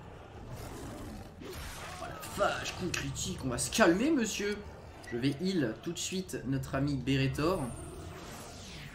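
A beast growls and roars.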